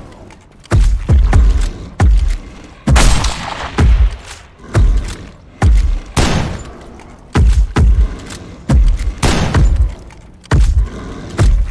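A rifle bolt clacks as it is worked between shots.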